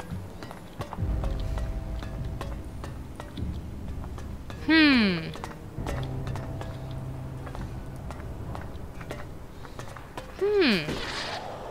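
Footsteps tread on a hard metal floor.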